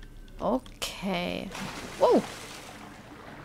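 A person dives into water with a splash.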